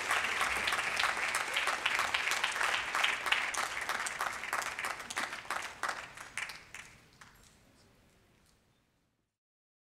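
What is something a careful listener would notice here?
An audience claps loudly, then the applause fades away.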